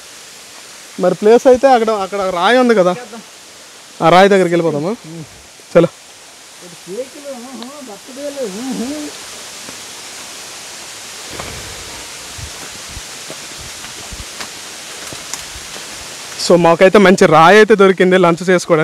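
A man talks loudly and with animation close by.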